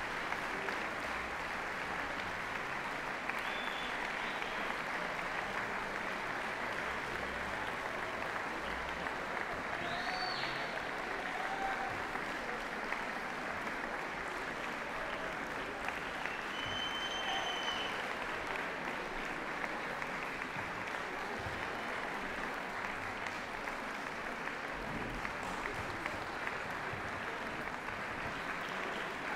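Musicians briefly tune their instruments.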